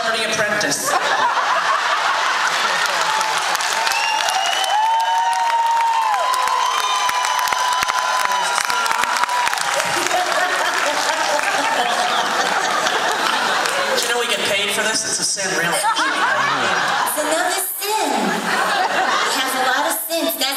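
A large audience cheers and applauds loudly.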